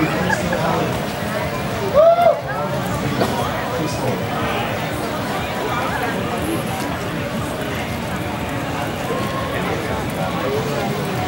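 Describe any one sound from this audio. Electric guitars play.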